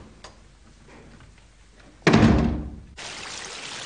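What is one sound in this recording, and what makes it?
A door swings shut with a thud.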